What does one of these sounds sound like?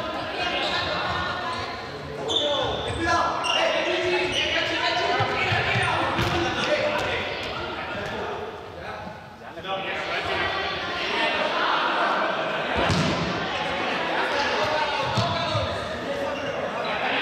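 Sneakers squeak and thud on a hard floor.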